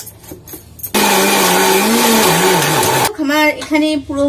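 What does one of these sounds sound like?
A mixer grinder whirs loudly.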